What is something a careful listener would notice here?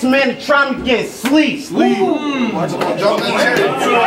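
A young man shouts to the crowd through a microphone.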